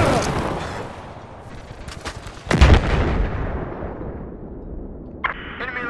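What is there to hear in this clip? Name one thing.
An explosion booms and rumbles close by.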